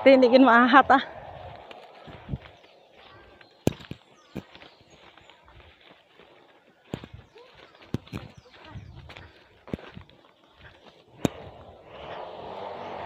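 Footsteps tread along a muddy dirt path.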